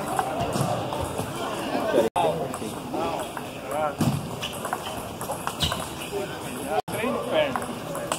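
A table tennis ball clicks off paddles and bounces on the table in a large echoing hall.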